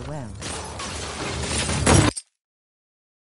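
A gunshot fires loudly.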